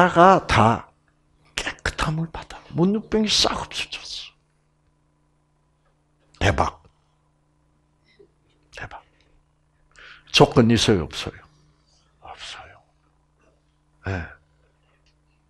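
An elderly man speaks in short, animated bursts through a microphone, with pauses between phrases.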